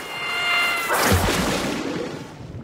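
A small animal plunges into water with a splash.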